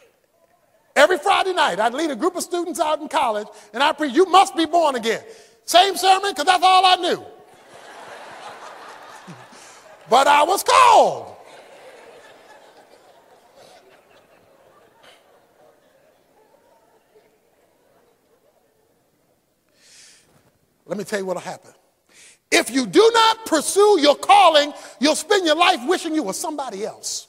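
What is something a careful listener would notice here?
A man preaches with animation, heard through a microphone.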